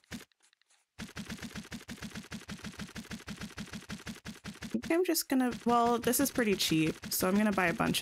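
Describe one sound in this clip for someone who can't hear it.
Quick electronic ticks repeat rapidly and steadily.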